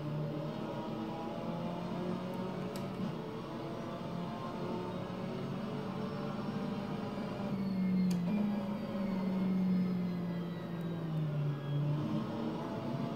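A racing car engine roars steadily, rising and falling in pitch as gears shift.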